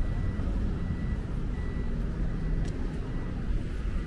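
A delivery truck's engine rumbles close by.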